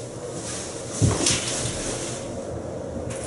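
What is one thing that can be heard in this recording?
A shower curtain rustles as it is pulled aside.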